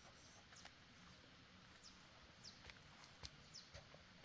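Granules patter lightly onto soil as they are scattered.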